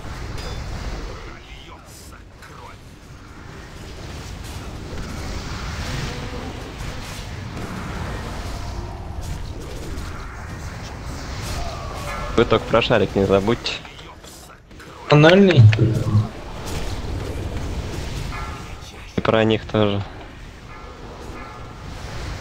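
Magic spells crackle and whoosh amid the clash of battle.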